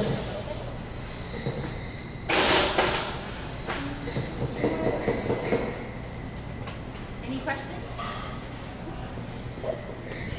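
Glass clinks as a man handles bottles and glasses.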